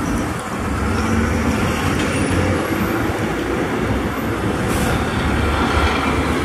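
A heavy truck's diesel engine rumbles loudly as it drives slowly past close by.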